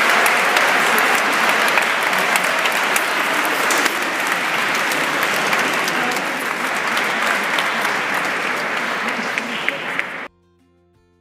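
A large crowd of young people chatters loudly in an echoing hall.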